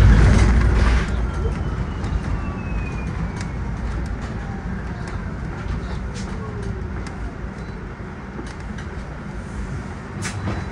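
A bus engine hums and rumbles steadily from inside the cabin.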